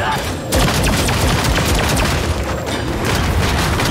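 Magical blasts crackle and boom in a game fight.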